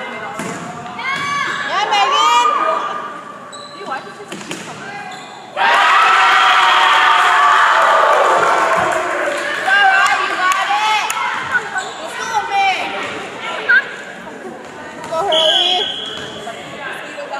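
Teenage girls shout calls to each other in a large echoing hall.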